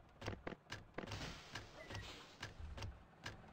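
The pneumatic doors of a city bus hiss shut.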